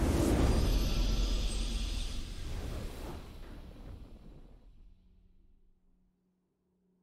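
A triumphant victory fanfare swells and fades out.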